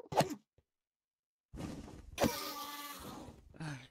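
A sword strikes a creature with a sharp thud.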